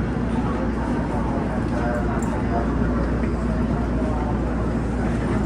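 A train's equipment hums steadily.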